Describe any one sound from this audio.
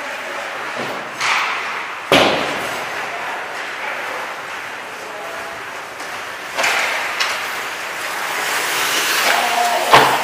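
Skate blades scrape and hiss on ice in a large echoing rink.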